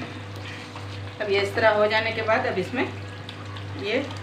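A wooden spoon stirs a thick curry in a metal pan.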